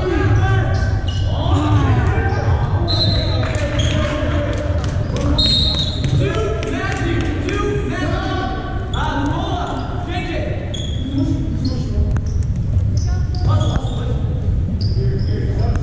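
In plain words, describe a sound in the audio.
Voices of a crowd chatter throughout the hall.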